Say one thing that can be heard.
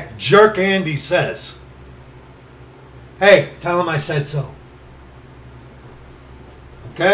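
A middle-aged man speaks with animation close to a microphone, in short bursts.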